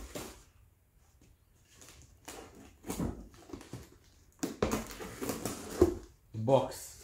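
A knife slices through packing tape on a cardboard box.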